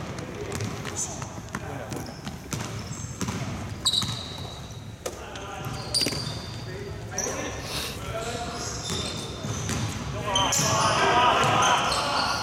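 Sneakers squeak sharply on a gym floor in an echoing hall.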